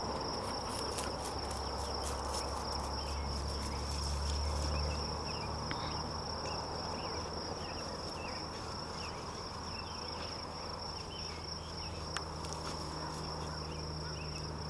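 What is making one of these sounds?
A dog rushes through dry grass and brush, rustling it.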